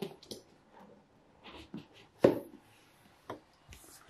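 A box lid lifts off with a soft scrape.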